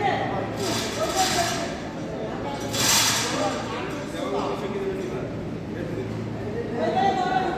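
Several men talk loudly nearby in a large echoing hall.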